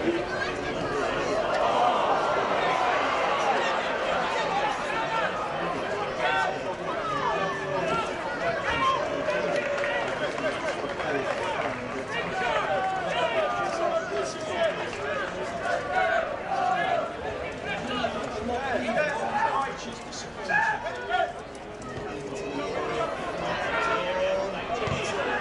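A crowd of spectators chatters and murmurs outdoors.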